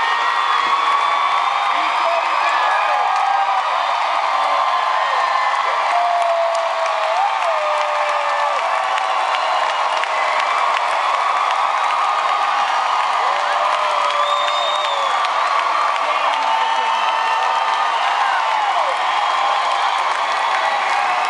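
A male singer plays an acoustic guitar through loudspeakers.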